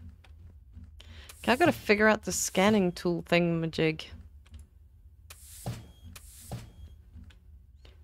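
A door slides open with a soft whoosh.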